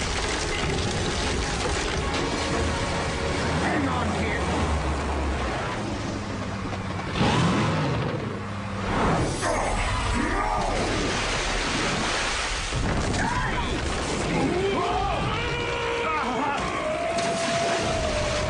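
Ice cracks and crashes down loudly.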